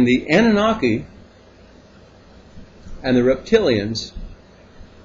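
An elderly man speaks calmly, close to the microphone.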